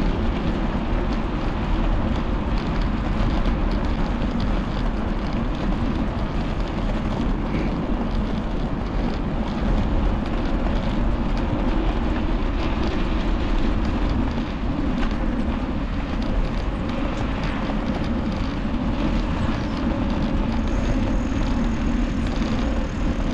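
Wind rumbles and buffets loudly against a moving microphone outdoors.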